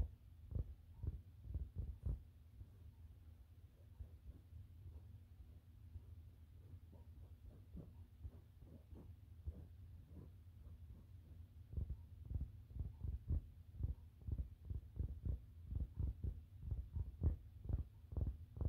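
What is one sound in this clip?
Fingernails tap and scratch right up close, in soft dull thumps.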